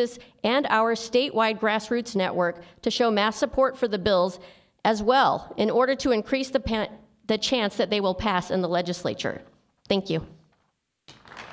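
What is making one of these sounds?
A young woman reads out calmly into a microphone.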